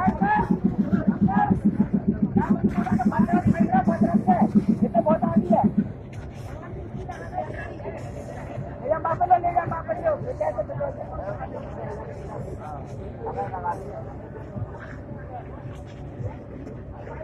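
Several men talk and shout excitedly nearby.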